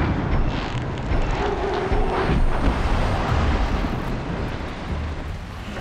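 Tall grass rustles as someone creeps through it.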